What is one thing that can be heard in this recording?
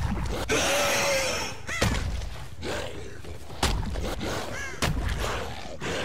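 A blade swings and slashes through the air.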